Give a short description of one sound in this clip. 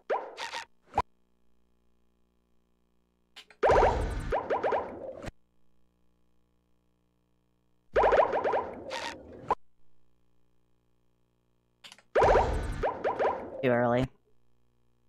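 A cheerful game menu jingle plays in short bursts.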